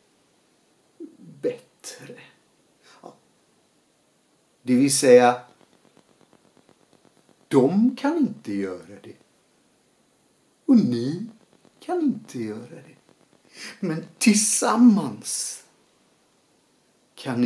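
A middle-aged man talks close up with animation, in short bursts.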